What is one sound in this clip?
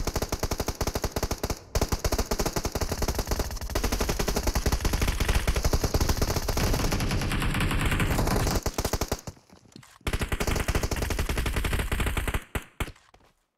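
Rapid rifle gunfire rattles in bursts.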